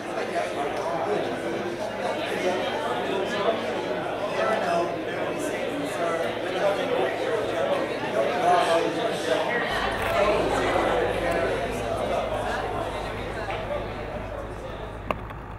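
An acoustic guitar is strummed.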